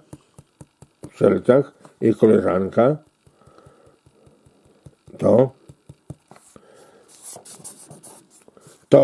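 Fingers rub and tap softly on old paper photographs.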